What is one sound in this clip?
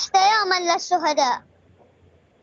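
A young girl speaks calmly through a microphone.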